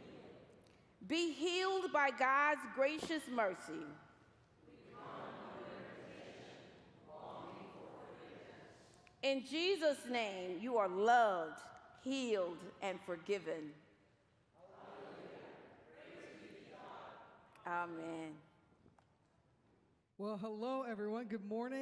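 A woman reads out aloud through a microphone in a large echoing hall.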